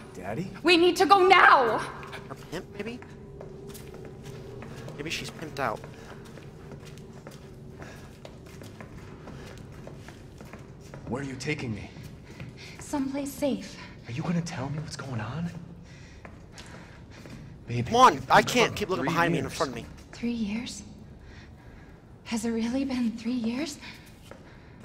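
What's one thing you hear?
A young woman speaks urgently.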